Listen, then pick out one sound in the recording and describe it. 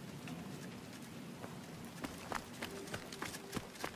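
Footsteps crunch quickly over gravel.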